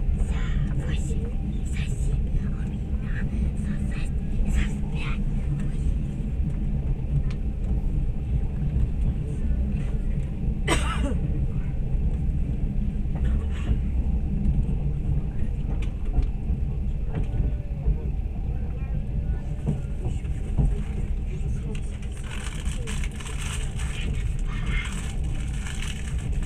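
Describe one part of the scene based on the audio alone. Wind rumbles steadily across an open outdoor space.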